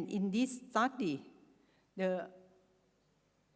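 A woman speaks into a microphone, heard through a loudspeaker.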